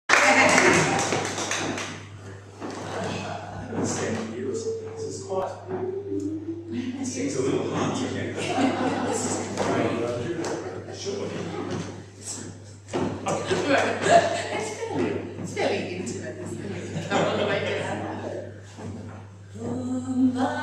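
A woman talks with animation in an echoing room.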